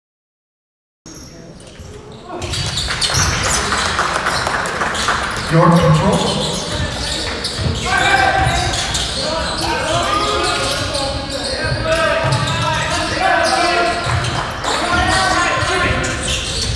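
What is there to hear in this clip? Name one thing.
A crowd of spectators chatters and cheers in a large echoing gym.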